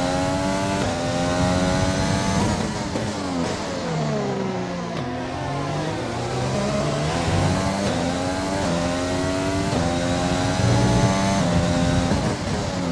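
Gear changes cut sharply through the engine's howl.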